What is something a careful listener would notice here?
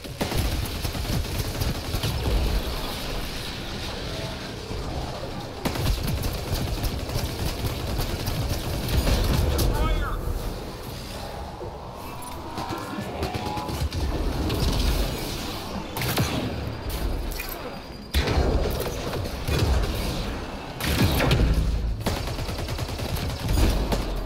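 Gunfire and energy blasts crack and boom in a game battle.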